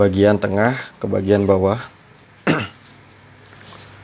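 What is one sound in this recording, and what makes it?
Chalk scratches lightly on cloth.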